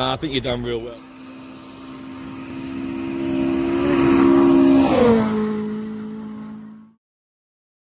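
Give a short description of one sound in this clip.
A car engine roars as it speeds closer and passes by.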